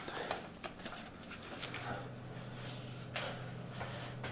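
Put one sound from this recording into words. Keys clatter as someone types fast on a keyboard.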